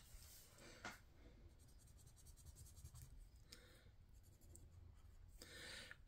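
A marker squeaks and taps on paper.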